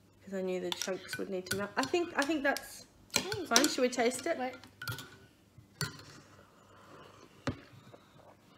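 A spoon clinks against a mug.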